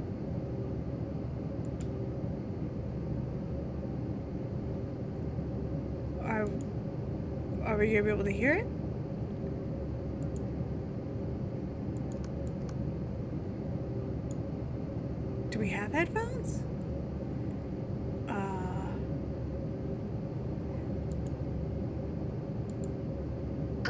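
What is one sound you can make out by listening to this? A steady low engine drone fills an airplane cabin.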